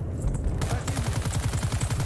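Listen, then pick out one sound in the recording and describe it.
A scoped rifle fires.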